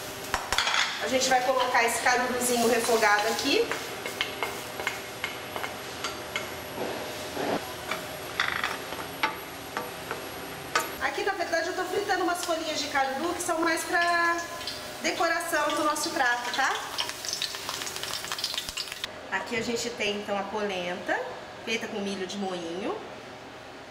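A young woman talks calmly and clearly close to a microphone.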